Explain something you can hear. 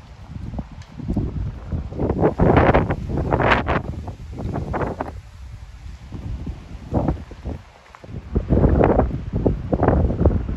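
Wind blows in strong, buffeting gusts outdoors.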